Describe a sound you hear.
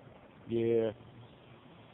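A small dog barks once nearby.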